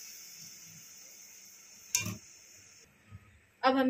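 Hot oil sizzles as it is poured into a pot of liquid.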